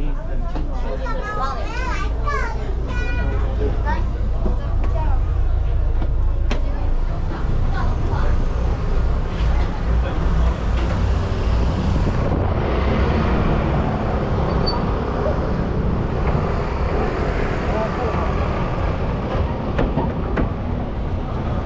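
A ship's engine rumbles low and steadily.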